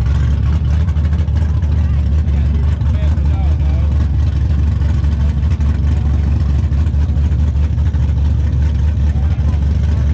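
A car engine idles with a deep, loud rumble close by.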